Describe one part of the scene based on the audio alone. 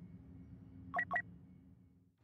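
Two short sharp clicks sound in quick succession.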